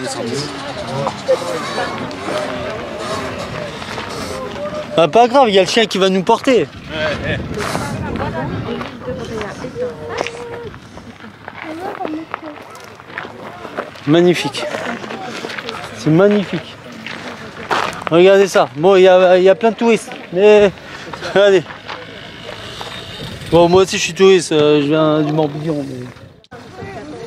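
A young man talks calmly close by, outdoors.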